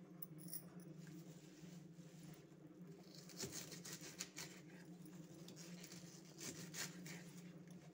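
Leaves rustle as a hand handles a bunch of greens.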